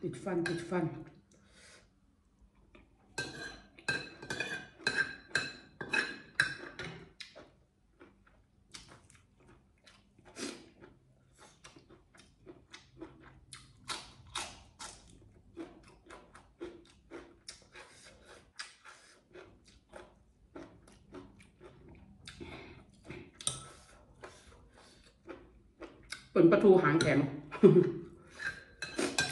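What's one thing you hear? A woman chews crunchy food close to a microphone.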